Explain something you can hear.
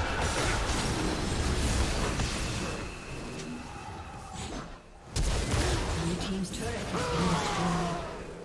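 Magic blasts and battle effects crackle and burst in quick succession.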